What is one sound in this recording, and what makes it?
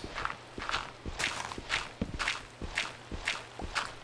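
Blocks of earth crunch as a pickaxe digs into them.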